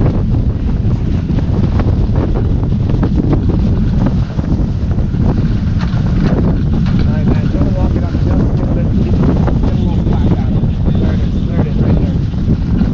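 Water rushes and splashes along a sailing boat's hull.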